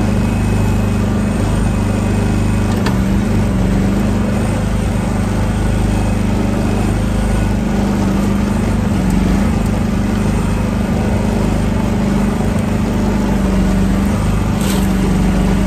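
A small excavator's diesel engine runs steadily close by.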